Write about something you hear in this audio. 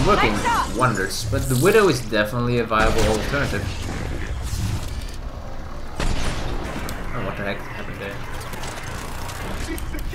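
An energy blast bursts with a crackling whoosh.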